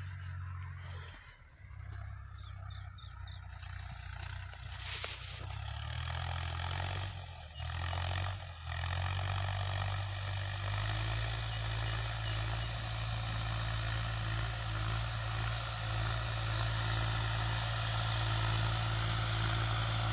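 A tractor engine drones steadily in the distance.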